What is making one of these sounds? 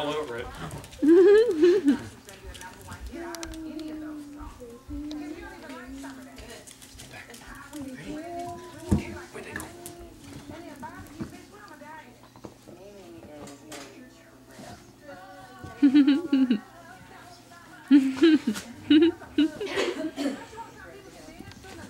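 A puppy yips and growls while playing.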